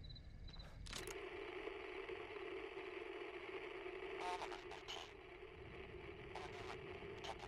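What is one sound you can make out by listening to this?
A handheld radio crackles with steady static.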